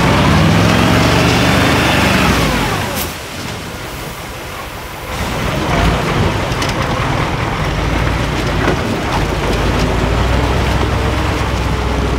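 Large tyres crunch and grind over loose rocks and dirt.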